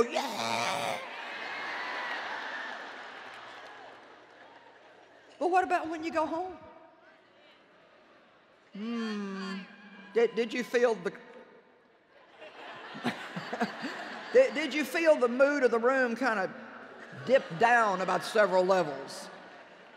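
A middle-aged woman speaks with animation through a microphone in a large hall.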